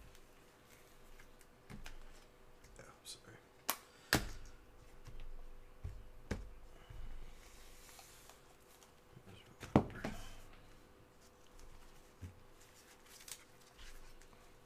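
Plastic wrapping crinkles and clicks as a pack of cards is handled.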